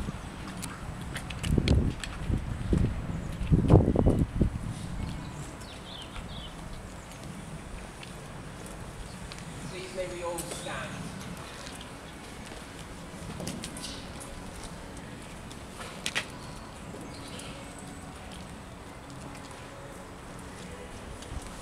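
Footsteps shuffle slowly on wet pavement.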